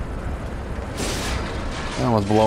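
A sword swishes and clashes in a quick flurry of blows.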